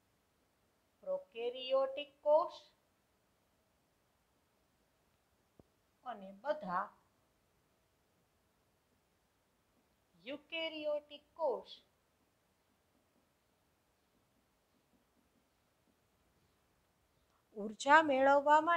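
A woman speaks calmly and slowly, in short phrases with pauses, close to a microphone.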